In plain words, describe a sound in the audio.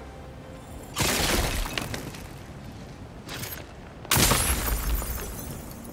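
A rock crystal cracks and shatters.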